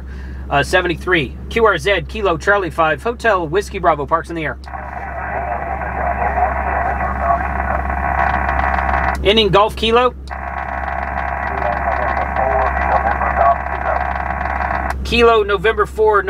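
A man speaks calmly into a handheld radio microphone close by.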